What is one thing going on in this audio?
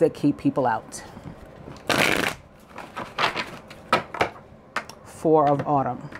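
Playing cards riffle and flutter as they are shuffled.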